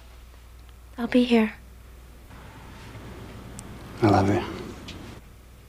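A man speaks quietly and calmly.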